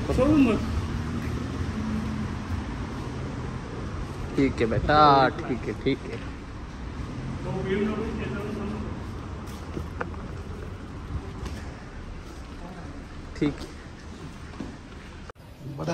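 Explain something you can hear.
Footsteps shuffle on a concrete floor.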